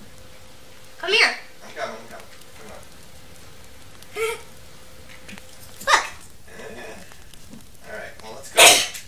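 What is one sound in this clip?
A young boy talks excitedly in short bursts close to a microphone.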